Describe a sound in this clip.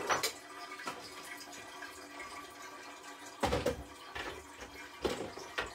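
Kitchen items clatter and knock nearby.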